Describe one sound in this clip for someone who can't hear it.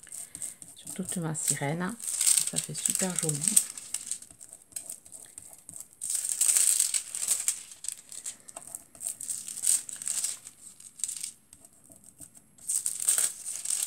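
Sheets of stiff foil card rustle and crinkle as hands handle them.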